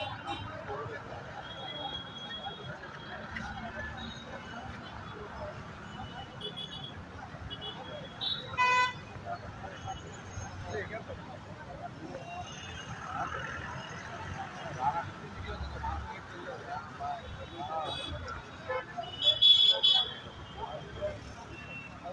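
A crowd of men talks and calls out nearby outdoors.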